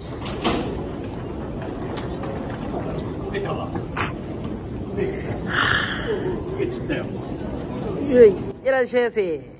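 A crowd murmurs in a busy hall.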